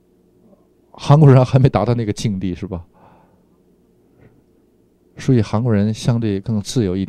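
An elderly man speaks with animation close to a microphone.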